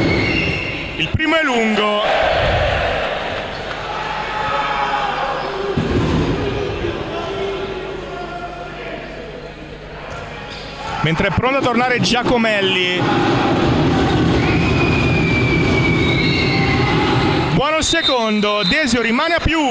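A crowd of spectators murmurs in a large echoing hall.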